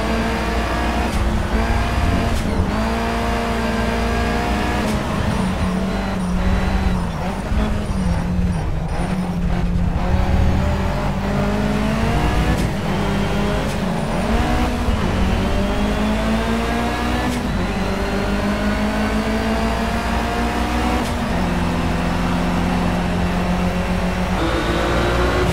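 A car engine revs hard, rising in pitch and dropping with each gear change.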